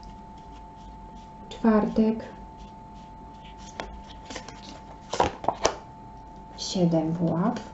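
A deck of cards is shuffled by hand.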